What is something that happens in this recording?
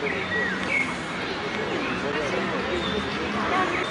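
A young woman giggles nearby.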